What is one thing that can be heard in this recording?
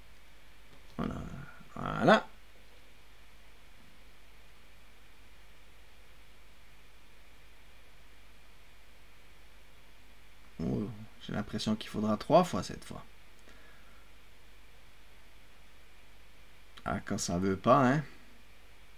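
A young man speaks calmly into a nearby microphone, in short bursts.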